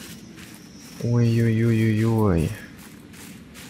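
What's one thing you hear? A young man sings a drawn-out note into a nearby microphone.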